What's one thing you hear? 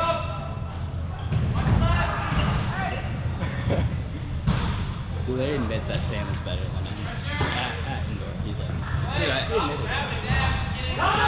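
Young players shout and call to each other in a large echoing hall.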